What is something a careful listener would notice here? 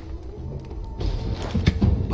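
A burst of fire roars loudly.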